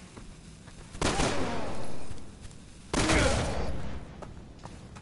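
Gunshots fire in loud bursts that echo.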